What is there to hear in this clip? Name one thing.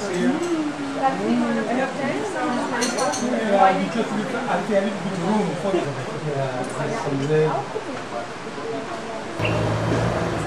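A man talks calmly a short distance away outdoors.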